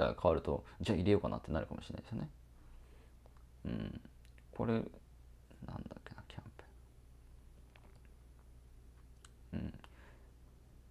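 A young man talks calmly close by, in short bursts.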